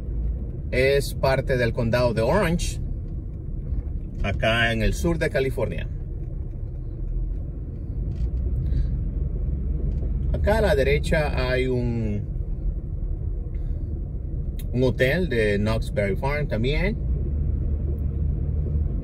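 A car drives steadily along a paved road with a low, constant rumble.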